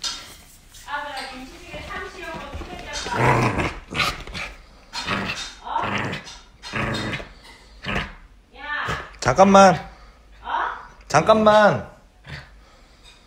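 A small dog growls playfully, close by.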